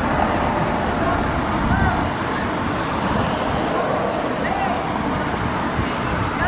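A crowd of marchers chatters nearby.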